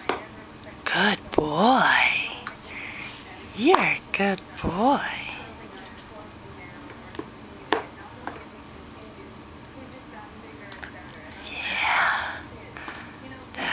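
A baby squeals and coos close by.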